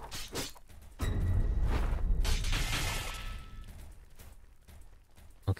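A monster growls and roars loudly.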